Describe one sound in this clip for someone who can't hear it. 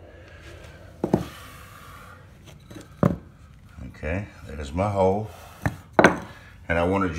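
A wooden disc knocks and clicks against a metal ring.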